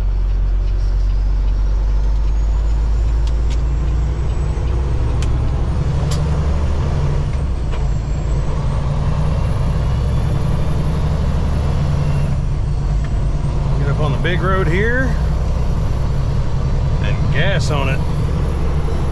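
A truck's diesel engine rumbles steadily from inside the cab.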